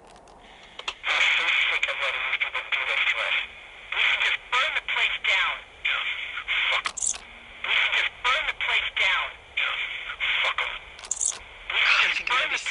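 A small cassette player plays a recording loudly and close by.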